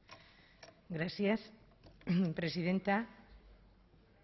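A woman speaks into a microphone at a lectern.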